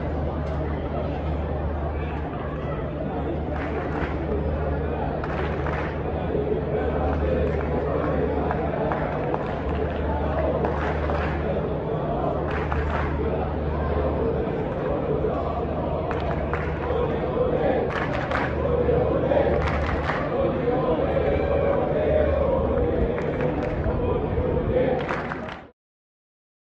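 A large crowd chants and cheers.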